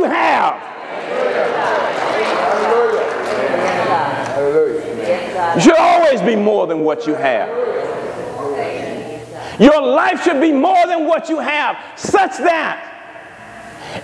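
A man preaches with passion through a microphone in a large echoing hall.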